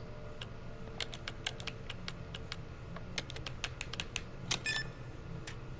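Keypad buttons beep in quick presses.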